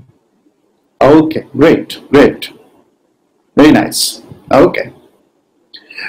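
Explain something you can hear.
A man speaks calmly over an online call, explaining.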